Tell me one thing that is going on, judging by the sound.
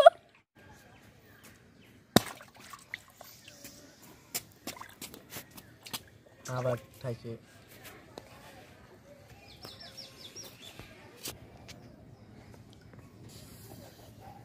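Hands slosh water in a metal bowl.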